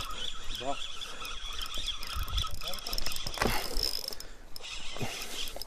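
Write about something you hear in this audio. A fishing reel whirs and clicks as its line is wound in.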